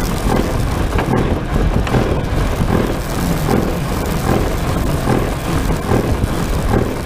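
A small wheel rumbles over a runway.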